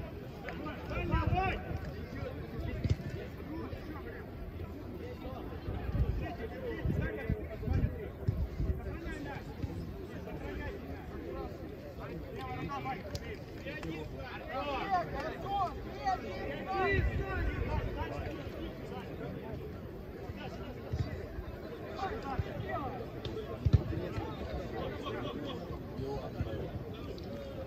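Men call out and talk at a distance outdoors.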